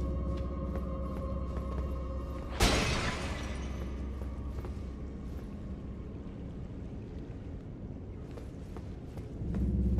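Footsteps tread on stone steps.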